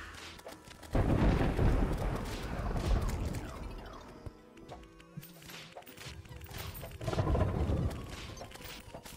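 Deep explosions boom and rumble.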